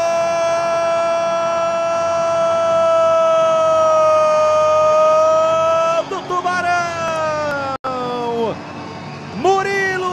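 A crowd cheers in an echoing indoor arena.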